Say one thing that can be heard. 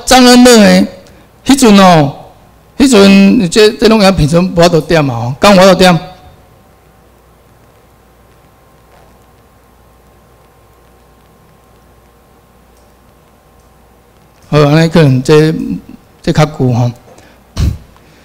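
A man speaks into a microphone through loudspeakers, pausing between phrases.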